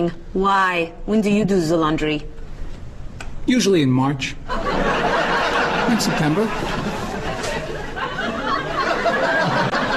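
A young woman speaks in a conversational tone.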